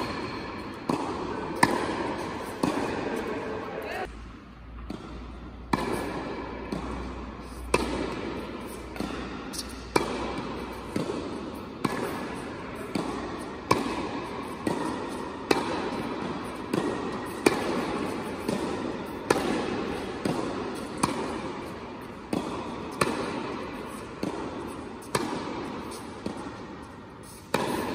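A racket strikes a tennis ball with sharp pops, echoing in a large hall.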